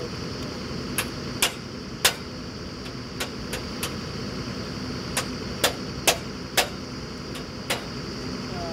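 Metal clanks sharply several times as men work at a drill rig.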